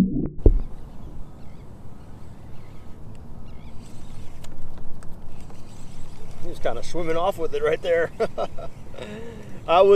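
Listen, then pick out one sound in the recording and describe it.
A fishing reel clicks as a man winds it.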